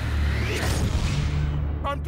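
An electric charge crackles and zaps.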